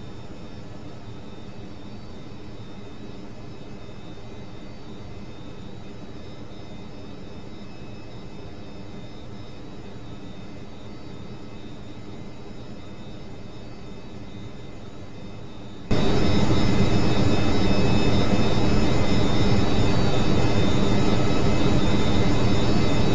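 Aircraft engines drone steadily, then suddenly grow much louder.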